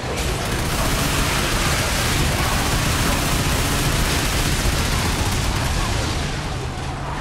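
Gunfire and explosions burst loudly.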